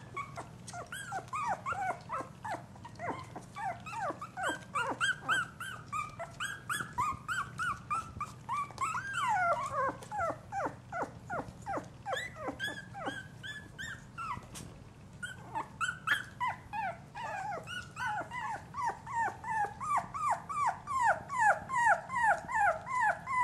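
Puppies squeal and whimper in rapid, high cries.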